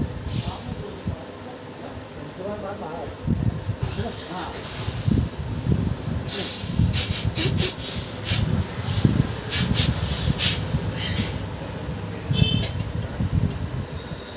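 Hands rub and scrape on bare skin and cloth.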